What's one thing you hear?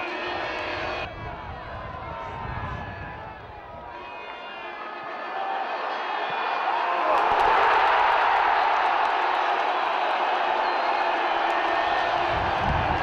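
A large crowd murmurs and roars in an open stadium, swelling loudly near the end.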